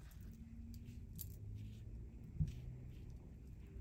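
A comb glides softly through short hair.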